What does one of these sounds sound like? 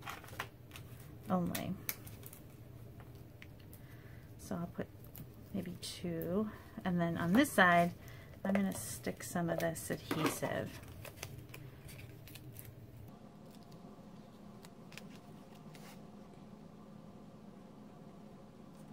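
Paper and card rustle softly as they are handled.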